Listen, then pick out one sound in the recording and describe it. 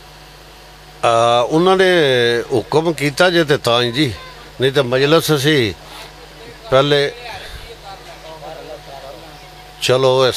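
A man recites loudly in a singing voice through a microphone and loudspeakers.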